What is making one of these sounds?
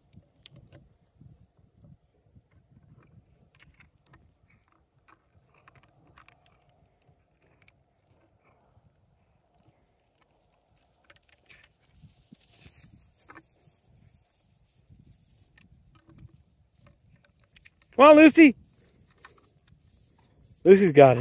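Dogs' paws rustle softly through grass.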